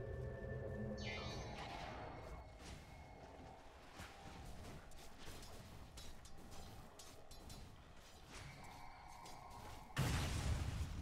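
A lightning bolt zaps with a sharp electric crackle.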